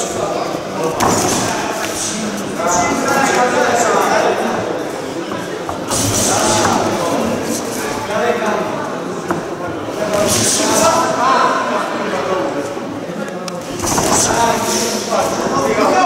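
Boxing gloves thud against a body and gloves.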